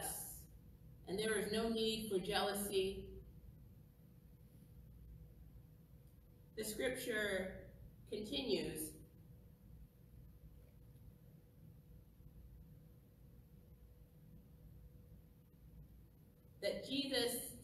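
A woman speaks slowly and calmly through a microphone, with long pauses.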